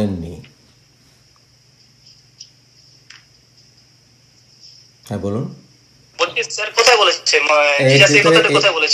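A young man speaks over an online call, with pauses.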